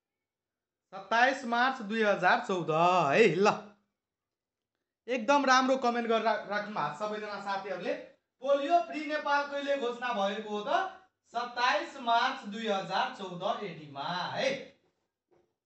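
A man speaks steadily in a teaching manner, heard through a microphone.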